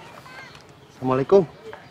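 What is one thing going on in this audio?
A woman answers calmly.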